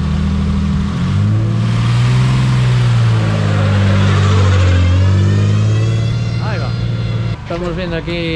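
A rally car engine revs up and down as the car pulls away.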